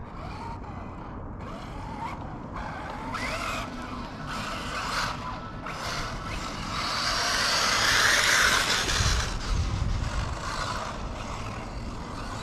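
A small electric toy car whines as it races over dirt.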